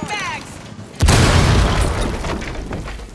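A loud blast bursts through a wall.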